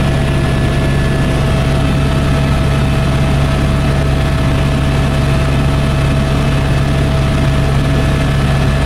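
A helicopter engine and rotor drone loudly and steadily from inside the cabin.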